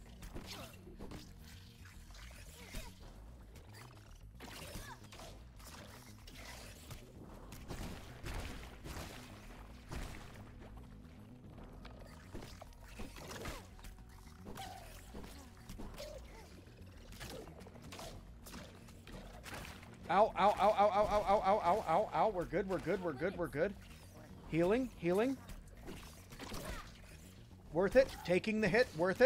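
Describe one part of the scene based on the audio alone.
Weapon blows thud and crack in a video game fight.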